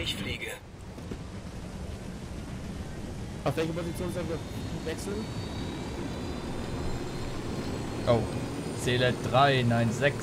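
A helicopter's engine whines and its rotor whirs steadily, growing louder as it lifts off.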